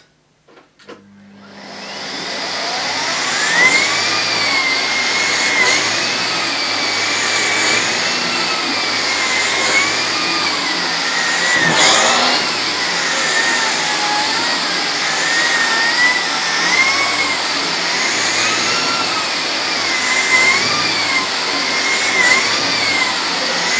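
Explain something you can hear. A vacuum cleaner motor whirs up and then roars steadily, its whine rising and falling as the cleaner pushes over a carpet.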